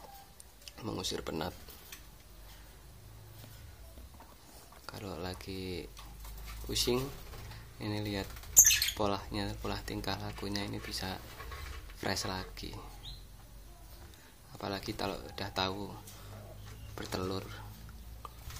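Small parrots chirp and squawk shrilly close by.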